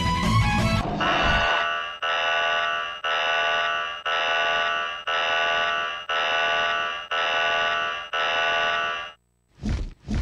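A warning siren blares in repeated pulses.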